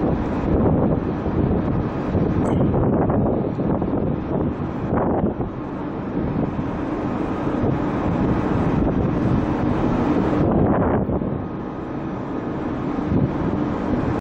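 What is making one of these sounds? Wind blows hard and rumbles outdoors.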